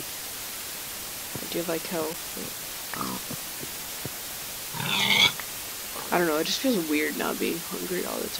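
A pig grunts nearby.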